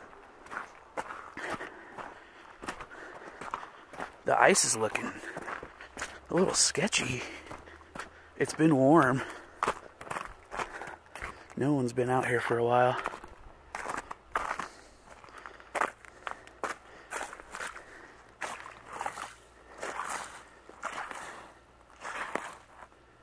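Footsteps crunch on loose stones and icy gravel.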